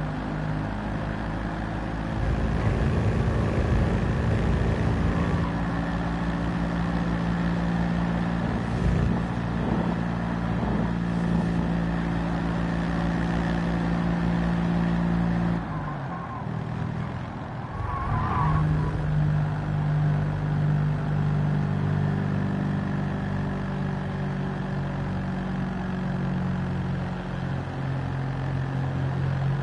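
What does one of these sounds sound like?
Other car engines drone nearby.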